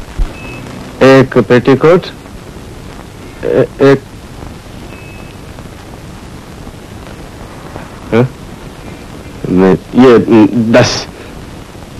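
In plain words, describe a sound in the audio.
A man speaks briefly in short phrases, close by.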